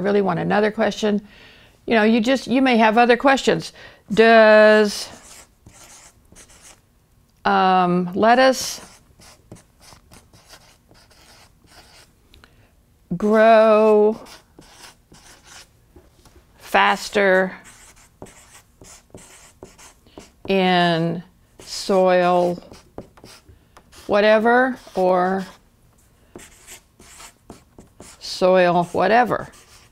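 An elderly woman speaks slowly and clearly into a close microphone, pausing between phrases.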